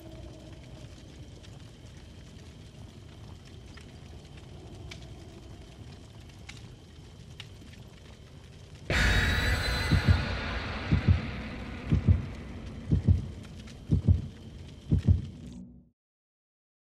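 A fire crackles softly and steadily.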